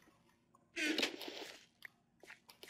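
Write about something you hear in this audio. A pickaxe chips at stone.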